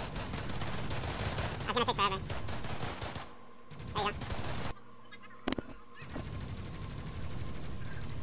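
A video game energy rifle fires.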